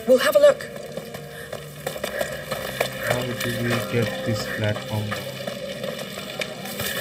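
Footsteps crunch slowly on gritty ground.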